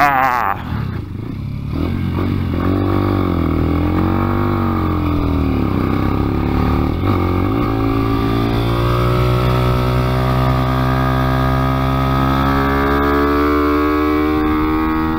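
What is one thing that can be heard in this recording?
A small racing engine buzzes loudly close by, revving up and down.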